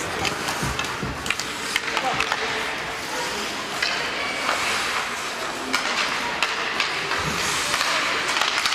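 Hockey sticks clack against a puck and the ice.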